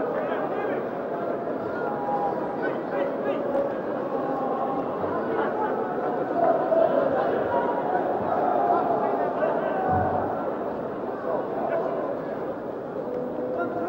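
A large crowd roars and chants in a big stadium.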